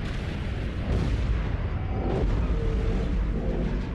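A car crashes and explodes with a deep roaring blast.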